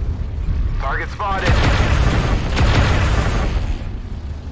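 Weapons fire with a loud blast and crackle.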